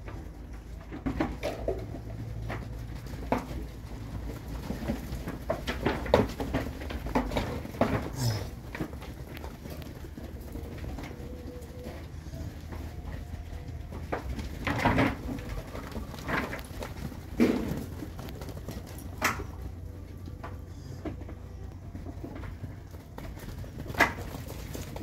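Cattle hooves thud and scuff on soft dirt as calves run past.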